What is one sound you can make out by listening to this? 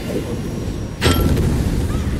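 A loud explosion bursts suddenly.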